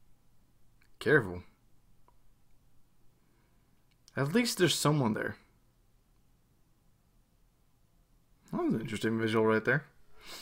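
A young man speaks quietly and slowly into a close microphone, in short phrases with long pauses.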